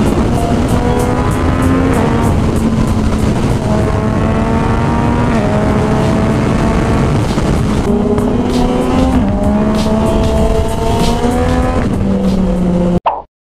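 A motorcycle engine roars steadily, its pitch rising through the gears with brief drops at each shift.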